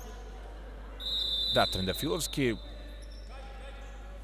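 Sneakers squeak sharply on a hard court floor.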